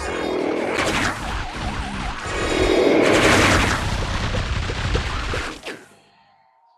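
Dense game sound effects of shooting and impacts pop and crunch rapidly.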